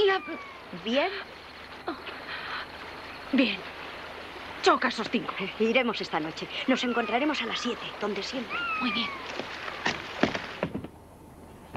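A young boy talks earnestly, close by.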